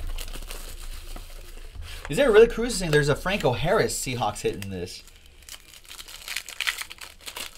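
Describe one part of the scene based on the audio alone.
Plastic wrappers crinkle as packs are torn open.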